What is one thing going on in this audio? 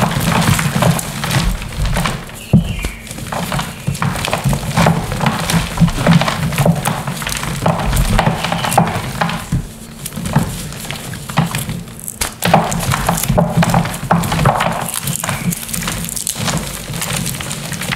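Powdery crumbs patter and sprinkle down onto stones.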